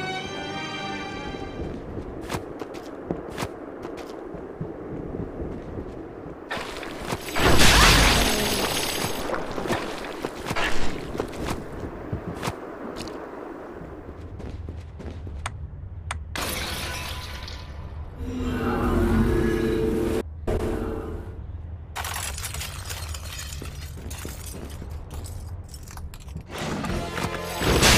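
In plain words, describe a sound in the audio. Game music plays steadily throughout.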